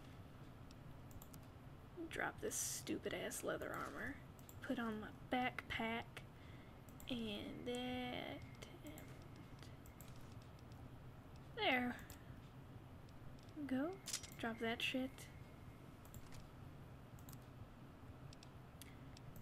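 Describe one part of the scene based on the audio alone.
Short electronic clicks sound as menu tabs switch.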